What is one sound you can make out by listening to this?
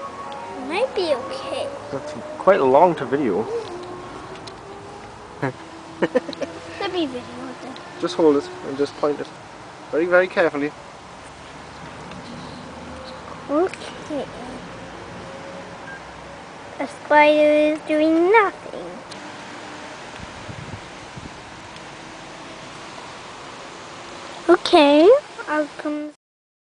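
A young boy talks close to the microphone, in short bursts.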